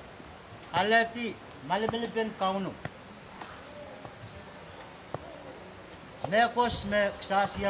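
A middle-aged man speaks calmly and clearly, close by, outdoors.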